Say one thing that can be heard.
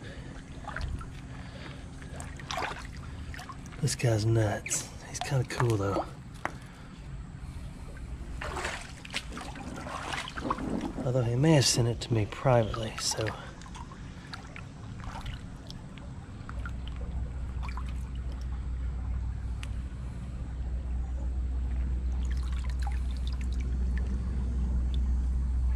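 A shallow stream trickles and gurgles over stones.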